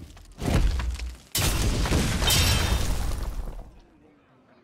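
A magical spell effect bursts with a booming whoosh.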